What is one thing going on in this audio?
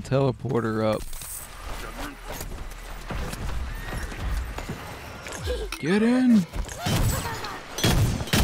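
Cartoonish guns fire in rapid bursts.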